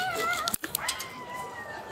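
A plastic knife scrapes on a plate.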